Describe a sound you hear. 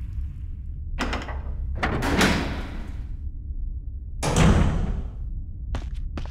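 A heavy metal door swings open with a deep groan.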